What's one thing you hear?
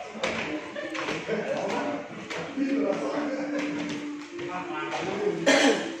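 Footsteps thud up a wooden staircase.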